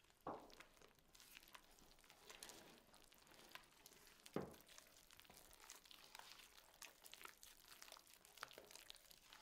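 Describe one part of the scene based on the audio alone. Hands squelch and knead wet dough in a bowl.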